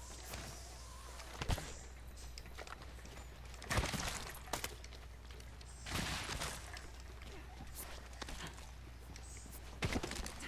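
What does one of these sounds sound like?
Footsteps thud on dirt and grass as someone runs.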